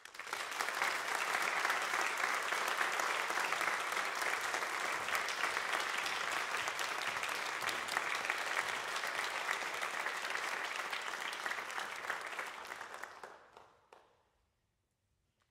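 A large audience applauds in an echoing hall, and the applause dies away.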